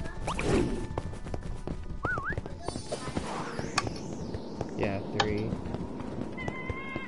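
Short chiming game effects ring out now and then.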